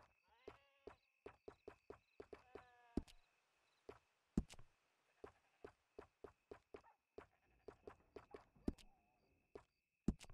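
Short menu clicks tick repeatedly as options are scrolled through.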